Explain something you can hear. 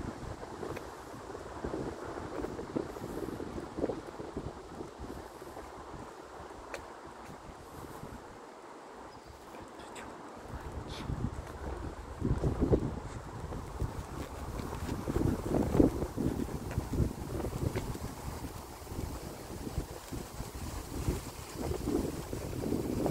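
Wind gusts and rumbles outdoors.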